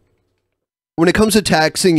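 A man talks with animation into a microphone on an online call.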